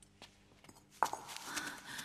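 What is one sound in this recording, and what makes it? A bowl is set down on the floor with a knock.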